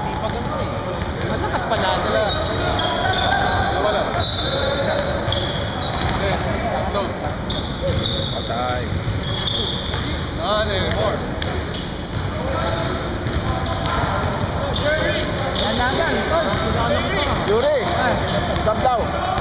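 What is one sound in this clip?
Men call out to each other in a large echoing gym.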